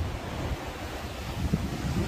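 Sea waves wash gently against rocks.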